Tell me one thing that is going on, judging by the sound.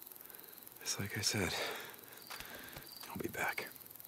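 A man walks on grass with soft footsteps.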